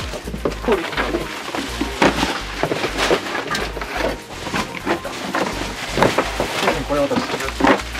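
Books knock and rustle as they are pulled from a shelf.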